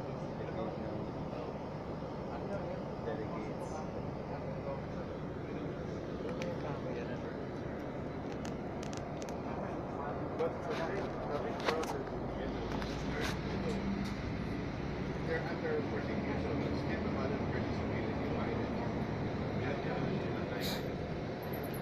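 Small knocks and rattles sound inside a bus.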